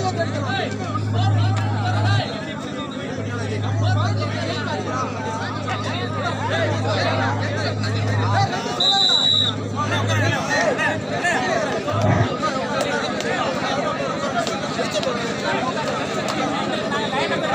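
A large outdoor crowd of men chatters and shouts all around.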